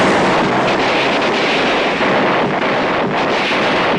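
A vehicle engine roars as a jeep drives over dirt.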